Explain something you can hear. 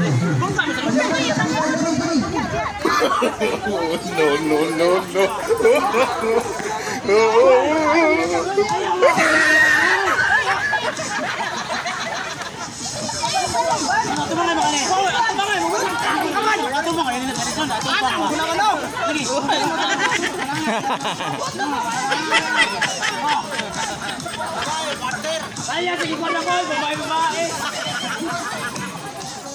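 A crowd of young men and women cheers and shouts with excitement outdoors.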